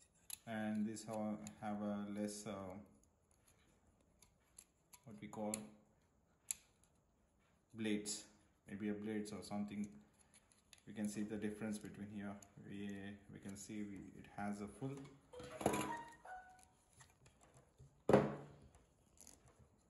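Plastic trimmer attachments click and rattle as they are handled.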